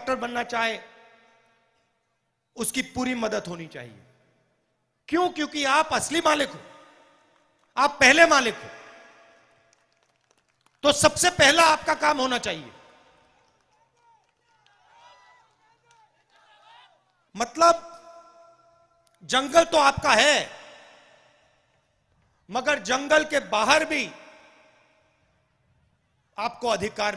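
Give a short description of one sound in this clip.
A man gives a speech forcefully through a microphone and loudspeakers, in short bursts with pauses, outdoors.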